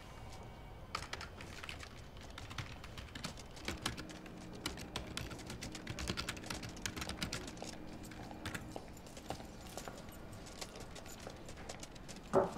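Keys click rapidly on a computer keyboard.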